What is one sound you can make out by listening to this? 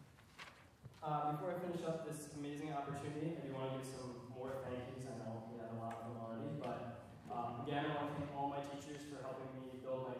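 A young man speaks calmly into a microphone, heard over loudspeakers in a large hall.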